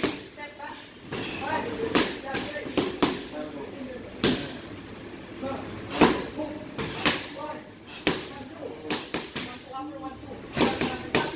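Gloved punches smack sharply against pads.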